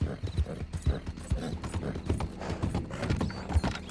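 Hooves clatter on a wooden bridge.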